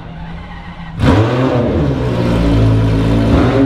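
A racing car engine idles with a loud, rough rumble.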